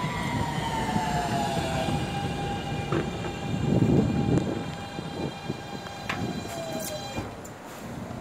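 A subway train pulls into the station, its motors whining down in pitch as it slows.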